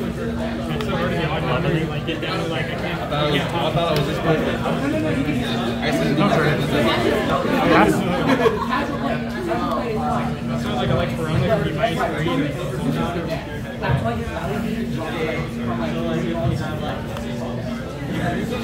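Playing cards slap softly onto a cloth mat.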